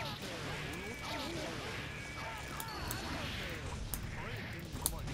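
Sharp hit sounds crack as fighters strike each other in a video game.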